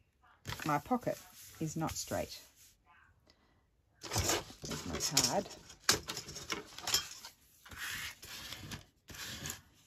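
Paper rustles and crinkles under a hand.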